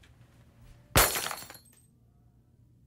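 Glass smashes loudly on the floor.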